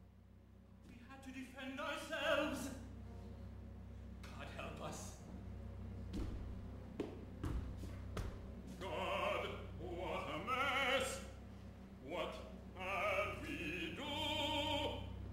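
A man sings in full voice in a large, echoing hall.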